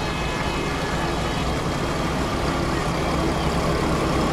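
A diesel train rumbles as it approaches and slowly grows louder.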